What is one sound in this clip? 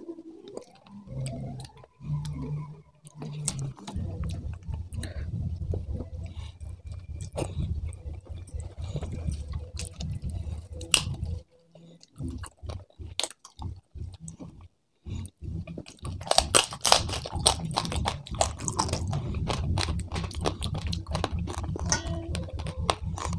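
Fingers squish and pick through soft fish and rice.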